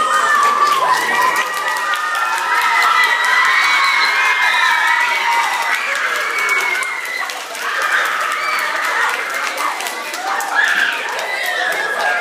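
A woman sings loudly through a loudspeaker.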